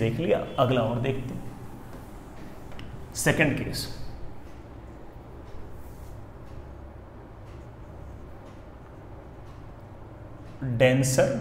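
A man speaks clearly and calmly close by.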